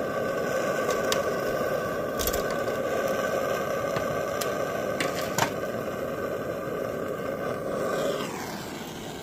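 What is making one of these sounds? A propane torch hisses and roars steadily.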